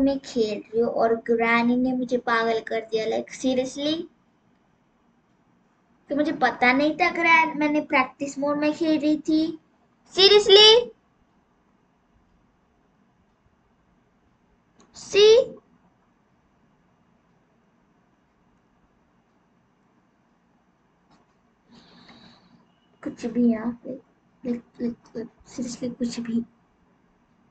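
A young girl talks with animation close to a microphone.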